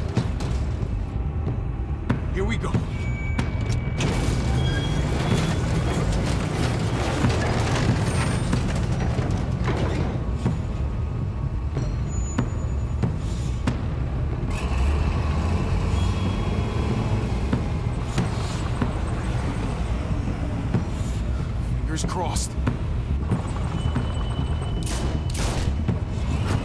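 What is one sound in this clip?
A heavy vehicle engine rumbles low and steadily.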